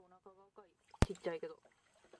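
A wet net drops onto a wooden boat with a knock.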